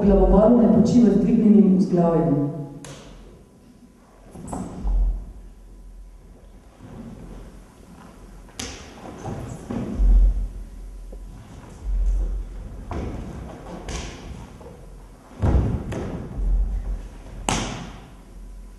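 Bare feet and bodies thump and slide on a stage floor.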